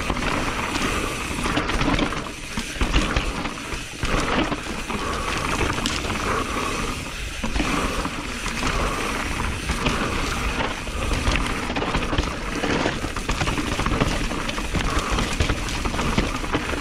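Mountain bike tyres rattle and crunch over a rough dirt trail.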